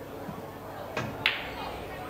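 A cue strikes a pool ball with a sharp click.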